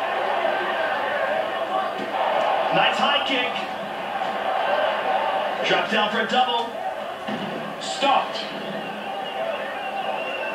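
Sounds from a fighting video game play through a television speaker.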